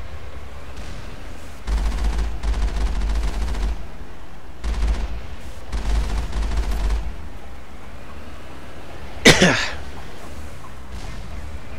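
Water splashes under rolling wheels.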